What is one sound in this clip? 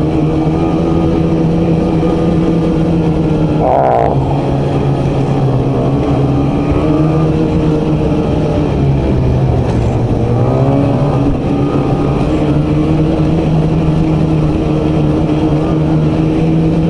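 Snow hisses under a snowmobile's track.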